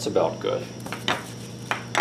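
Plastic wrap crinkles.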